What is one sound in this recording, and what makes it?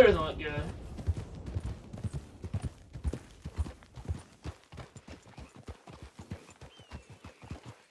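Horses' hooves thud steadily on a dirt path.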